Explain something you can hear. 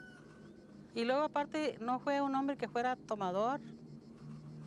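An elderly woman speaks calmly and close by.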